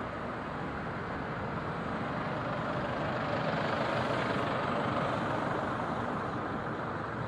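A tram rolls past with a rising and fading rumble.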